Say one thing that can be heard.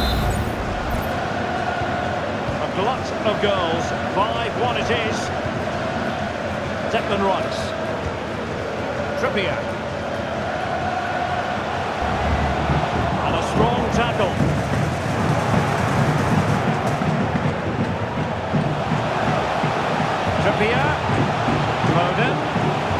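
A large stadium crowd roars and chants steadily.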